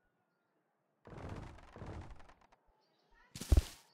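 Footsteps thud quickly across grass.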